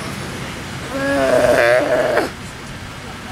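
A Galapagos sea lion barks.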